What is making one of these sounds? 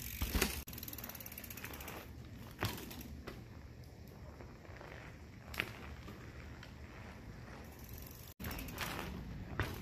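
Mountain bike tyres roll over asphalt.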